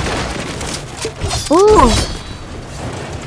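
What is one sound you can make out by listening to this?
A blade swings with a crackling electric burst.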